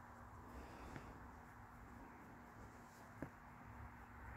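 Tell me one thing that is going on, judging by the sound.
A pencil taps lightly.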